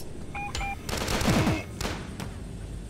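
A shotgun fires with a loud blast.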